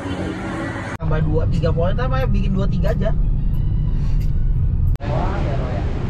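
Traffic rumbles on a busy road.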